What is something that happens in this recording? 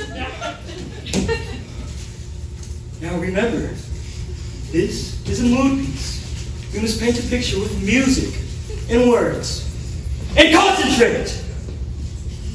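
Young actors speak lines with animation on a stage.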